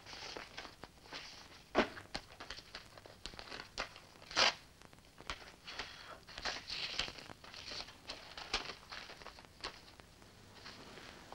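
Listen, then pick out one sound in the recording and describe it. Paper rustles and crackles as it is unfolded and handled.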